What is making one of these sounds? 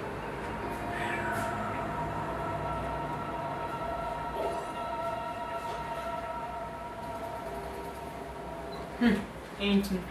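Electronic music with steady held notes plays from a television.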